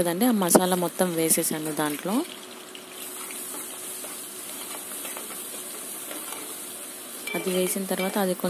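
Oil sizzles and crackles in a pot.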